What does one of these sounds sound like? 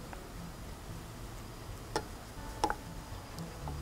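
A spoon clinks against a pot while stirring.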